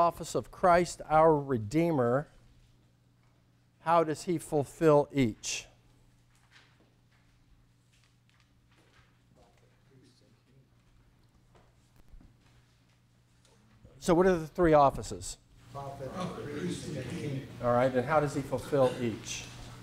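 An older man speaks calmly into a microphone, with pauses.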